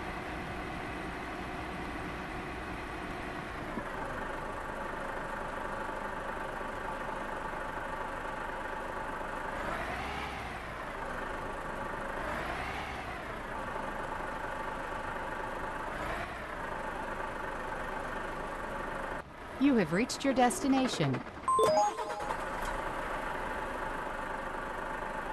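A truck engine rumbles steadily and revs up and down as it drives slowly.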